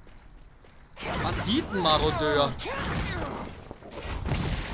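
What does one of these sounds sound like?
Magic blasts burst and crackle in a fight.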